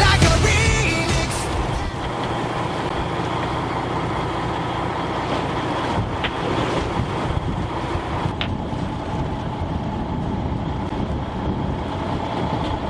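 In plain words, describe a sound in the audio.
Waves splash and churn steadily against the side of a boat.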